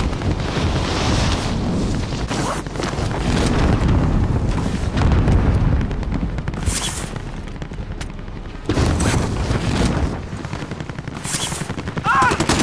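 Wind rushes loudly past a falling figure.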